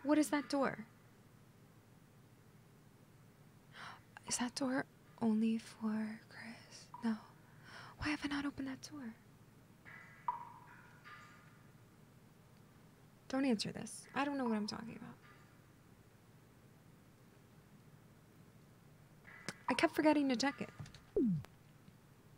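A young woman talks casually and with animation into a close microphone.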